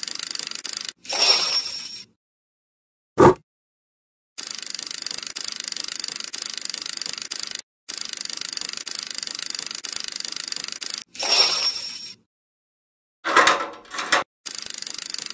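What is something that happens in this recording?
An electronic slot machine win jingle chimes.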